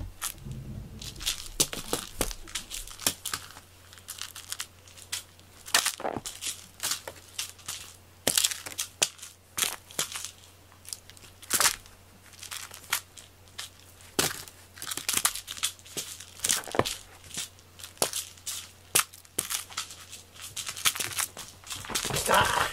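A cat scratches and claws at a woven straw basket with sharp rustling scrapes.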